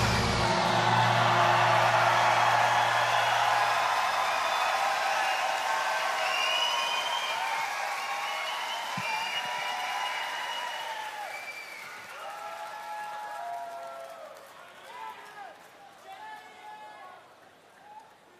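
A large crowd cheers and whistles loudly in a big hall, then slowly fades.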